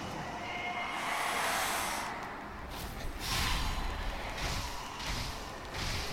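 A sword slashes through the air.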